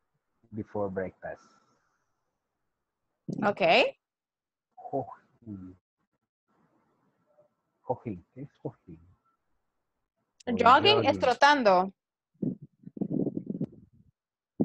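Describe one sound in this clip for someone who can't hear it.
A young woman speaks calmly over an online call, in short phrases with pauses.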